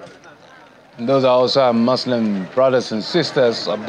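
A man speaks loudly and with animation in front of a crowd.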